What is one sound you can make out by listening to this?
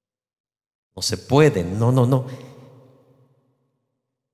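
A man speaks with animation through a microphone in a large echoing hall.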